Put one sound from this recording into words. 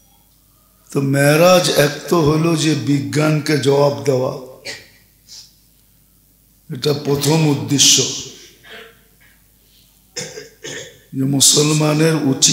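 An elderly man preaches with feeling into a microphone.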